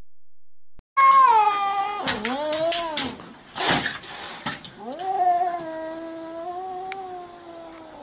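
A cat yowls loudly and at length, close by.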